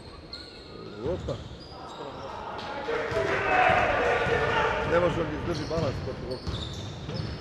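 Players shout across an echoing hall.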